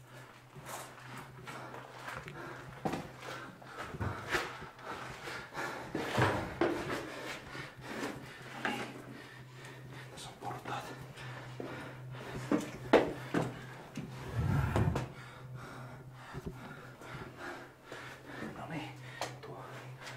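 Footsteps thud and scuff on stairs, close by.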